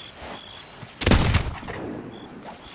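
A loud blast booms and roars.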